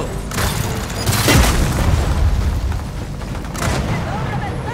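A gun fires sharp shots.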